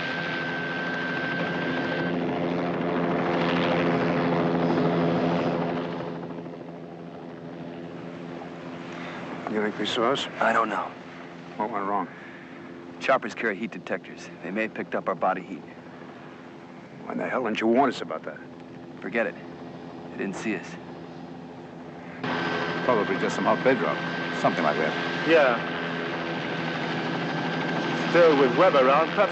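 A helicopter's engine and rotor drone loudly overhead.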